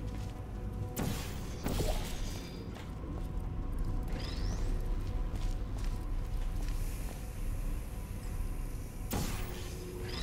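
A portal gun fires with sharp zaps.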